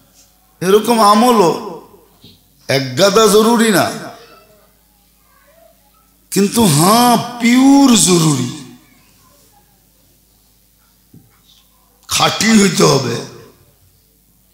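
A man preaches with strong feeling into a microphone, in bursts with pauses between them, heard through a loudspeaker with some echo.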